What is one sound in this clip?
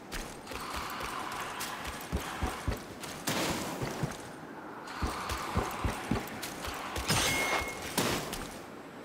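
Footsteps thud on dirt and gravel.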